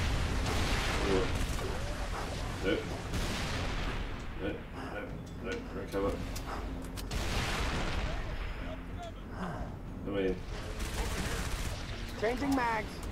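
Gunfire and explosions roar in bursts.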